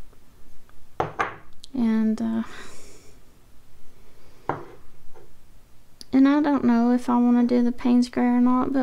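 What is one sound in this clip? A small ceramic pot clinks as it is set down on a hard surface.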